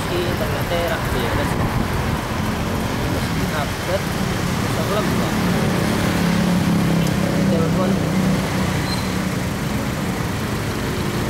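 Motorcycle engines hum and rumble close by in heavy traffic.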